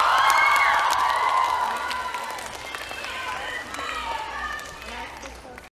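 Young performers call out loudly with animation in a large echoing hall.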